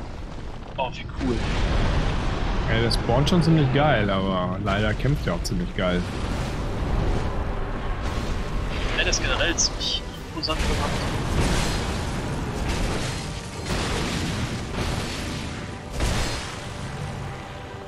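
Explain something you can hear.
A large creature roars and stomps heavily.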